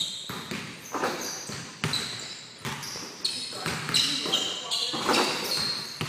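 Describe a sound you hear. A basketball clangs off a hoop's rim.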